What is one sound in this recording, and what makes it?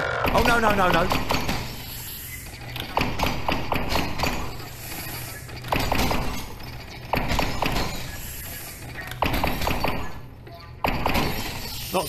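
A video game gun fires repeated bursts of blasts.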